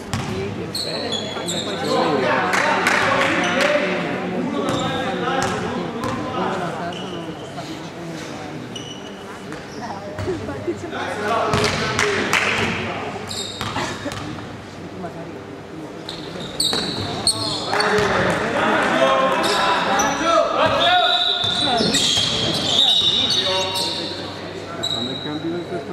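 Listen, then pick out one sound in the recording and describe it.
A crowd of young people chatters and shouts in a large echoing hall.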